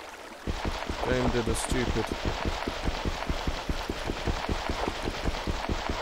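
Rapid, steady tapping of a pickaxe chipping at stone comes from a game.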